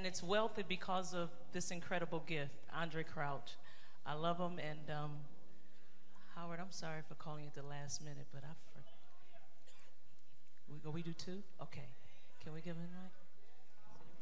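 A woman sings into a microphone over loudspeakers in a large echoing hall.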